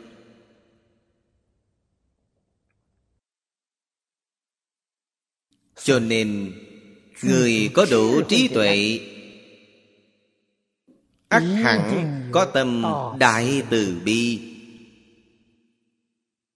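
An elderly man speaks calmly and clearly into a close microphone, in short phrases with pauses.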